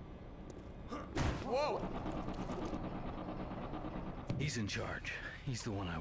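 A man speaks gruffly.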